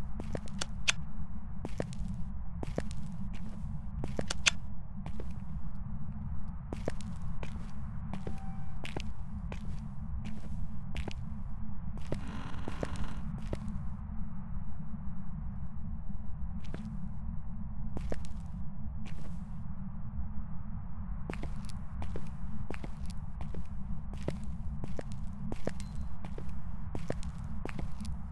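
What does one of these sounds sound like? Footsteps tap on a hard floor at a slow walk.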